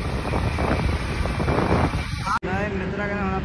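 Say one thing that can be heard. A motorcycle engine hums while riding.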